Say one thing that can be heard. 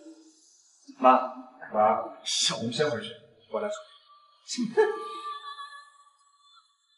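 A young man speaks calmly to a woman.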